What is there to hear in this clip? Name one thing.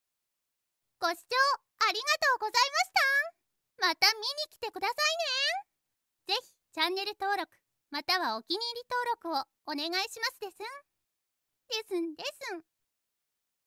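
A young woman speaks cheerfully in a synthetic voice.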